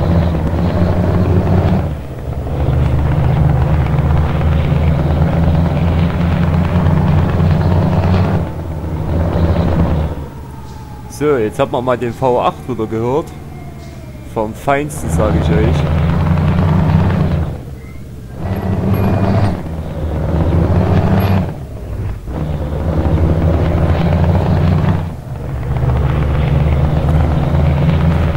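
A truck engine drones low and steady, dropping away briefly now and then.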